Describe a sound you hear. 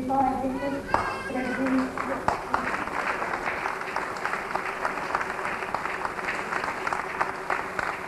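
A crowd of women claps along in a steady rhythm.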